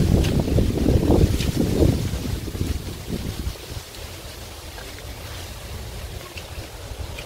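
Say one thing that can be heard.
Footsteps swish softly through grass.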